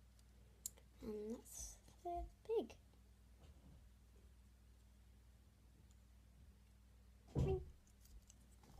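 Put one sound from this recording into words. A young girl speaks close by, in short bursts.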